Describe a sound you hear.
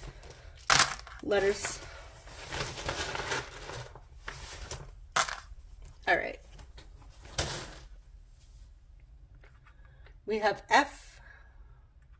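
Cards slide and rustle on a table.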